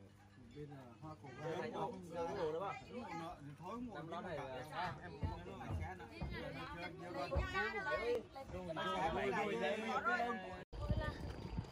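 Several men talk animatedly close by.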